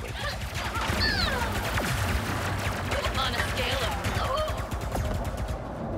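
Rapid blaster shots fire in bursts.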